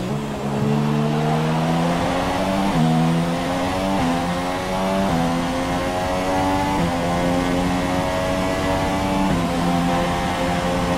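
A racing car engine roars, climbing in pitch and dropping briefly with each gear change.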